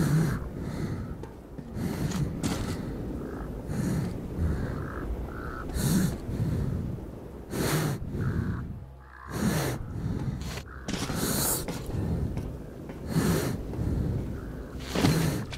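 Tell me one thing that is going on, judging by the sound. Rain patters steadily all around.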